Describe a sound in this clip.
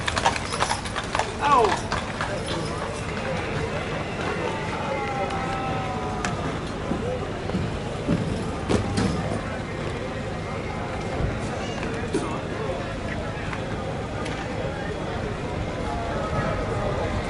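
A crowd of men and women murmur and talk nearby outdoors.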